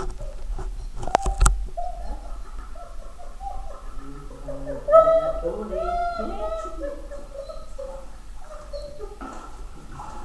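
A middle-aged woman talks to a dog in a warm, encouraging voice.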